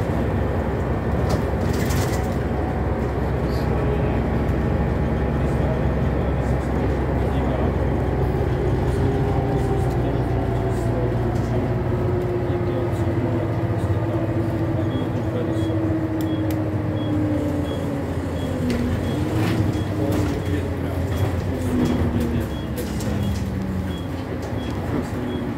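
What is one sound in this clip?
The bus interior rattles and clatters over bumps.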